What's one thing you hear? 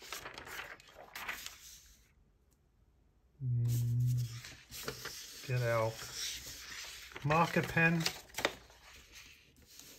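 Sheets of paper rustle as they are moved.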